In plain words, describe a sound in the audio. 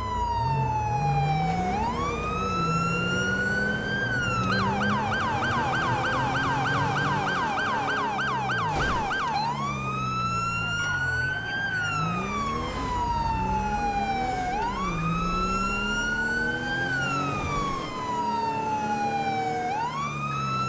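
A police siren wails up and down, switching to a rapid yelp for a few seconds.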